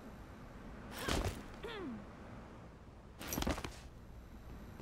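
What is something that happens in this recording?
A game character slides across a hard floor with a loud whoosh.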